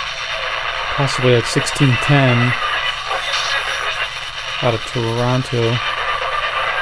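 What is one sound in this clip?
A man's voice briefly comes through a small radio speaker.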